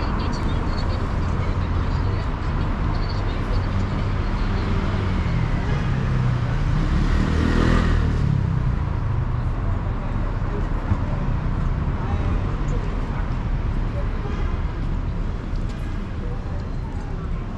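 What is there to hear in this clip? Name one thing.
Low wind rumbles outdoors.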